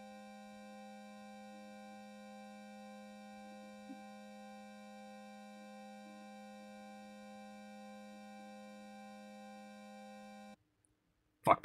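A steady electronic chord hums from a game.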